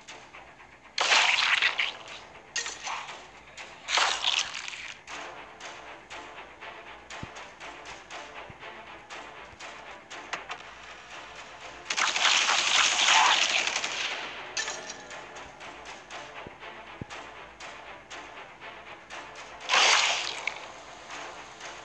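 A blade strikes with a sharp whooshing hit, several times.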